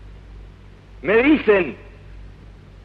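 A man speaks loudly into a microphone, heard through an old, hissy recording.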